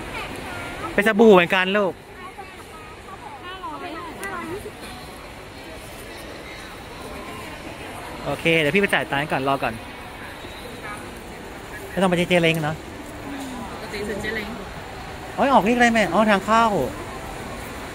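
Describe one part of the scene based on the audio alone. A young woman talks close by in a lively way, in short bursts.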